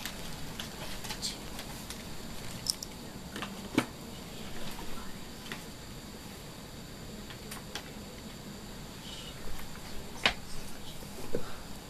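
Clothing rustles and brushes right up close.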